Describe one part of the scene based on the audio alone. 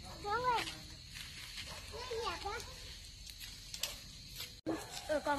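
Leaves rustle as a boy tugs at tree branches.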